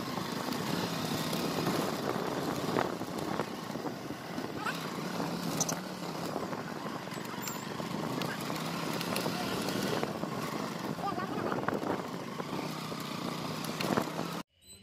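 A motorcycle engine hums steadily nearby.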